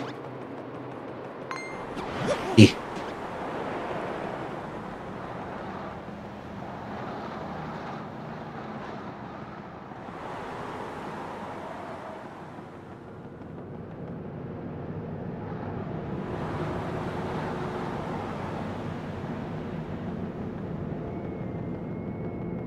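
Cheerful video game music plays throughout.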